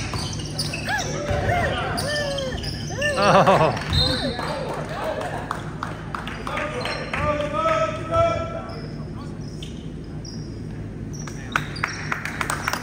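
Voices of players and spectators echo in a large gym.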